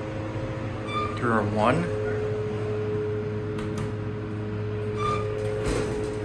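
An elevator chime dings.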